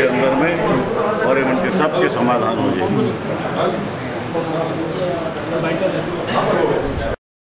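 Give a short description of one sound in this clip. A man speaks up close with animation.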